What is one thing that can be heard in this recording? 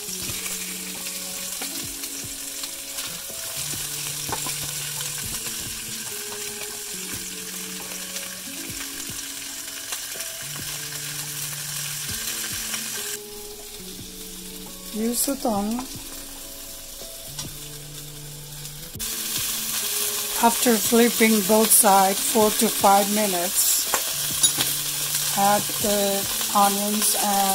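Chicken sizzles in hot oil in a pot.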